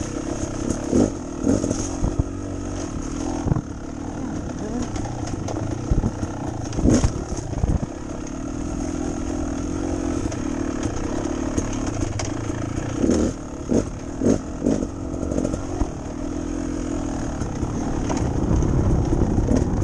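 Tyres thump and bump over a rough dirt trail.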